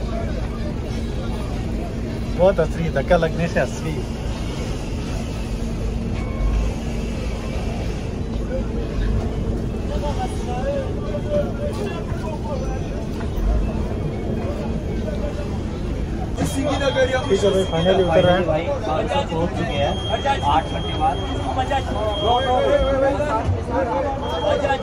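A bus engine rumbles steadily with a low hum.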